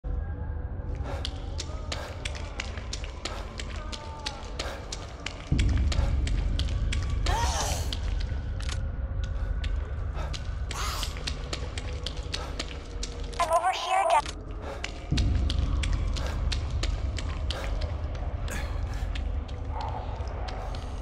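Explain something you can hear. Sparks crackle and snap in quick bursts.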